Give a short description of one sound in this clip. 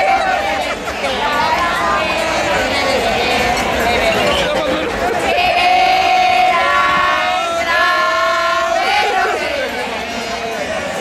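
A crowd of women sings loudly together close by.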